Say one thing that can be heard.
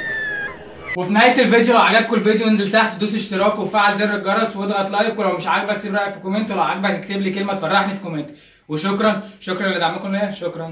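A young man speaks rapidly and rhythmically close by, as if rapping.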